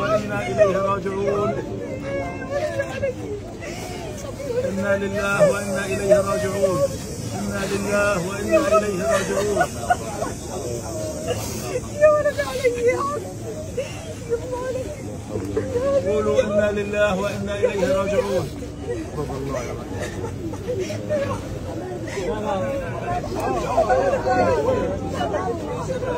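A man weeps and wails loudly nearby.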